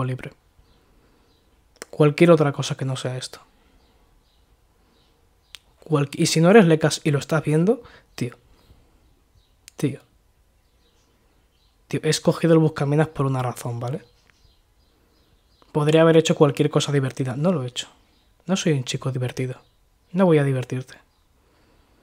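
A young man speaks calmly and close into a microphone, in short bursts with pauses.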